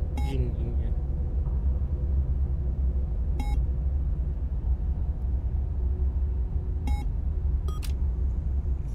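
Short electronic beeps sound as menu options are selected.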